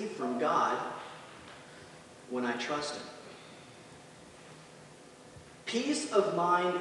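A man speaks with animation into a microphone in a large echoing hall.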